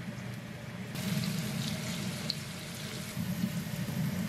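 Meat sizzles in a hot pan.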